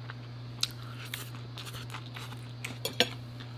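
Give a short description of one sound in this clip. A young woman chews food up close.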